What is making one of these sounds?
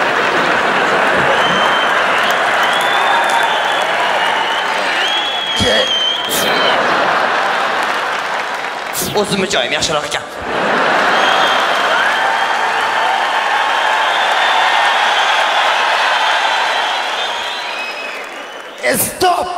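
A large audience laughs loudly and cheers.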